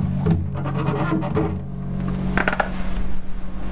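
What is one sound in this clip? A stool creaks as a person gets up from it.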